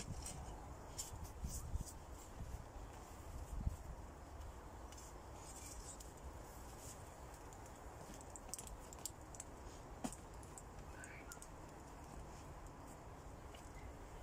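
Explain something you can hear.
A person presses down soil in a pot with soft thuds and rustles.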